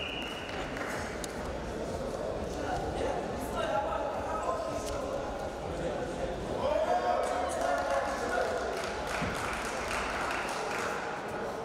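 Shoes squeak and scuff on a wrestling mat.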